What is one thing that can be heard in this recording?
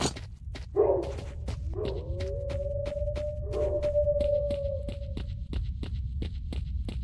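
Footsteps run steadily on a hard road.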